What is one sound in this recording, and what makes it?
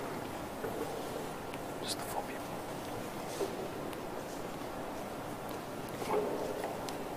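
A large congregation murmurs softly in a big echoing hall.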